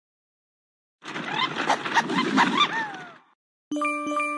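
Game pieces tumble and pop with squeaky cartoon sounds.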